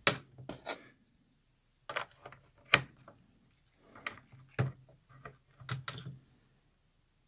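Plastic connectors click and knock as hands handle them.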